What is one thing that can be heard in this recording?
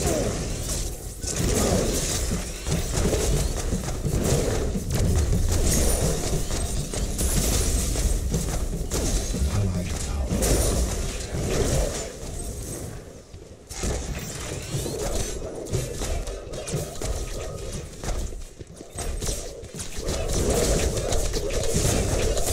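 Game weapons fire and blast in quick bursts.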